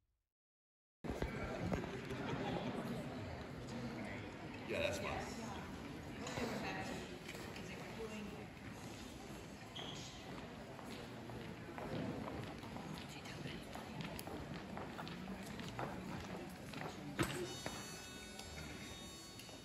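Men and women chat quietly in a large echoing hall.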